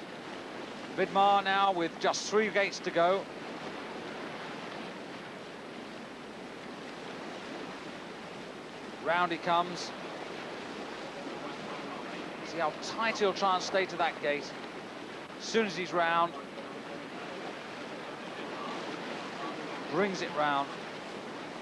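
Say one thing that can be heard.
Whitewater rushes and churns steadily.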